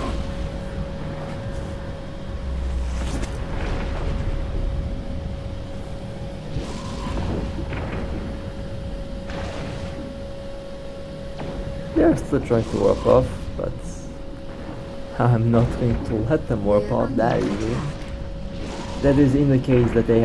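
Laser weapons fire in a steady crackling hum.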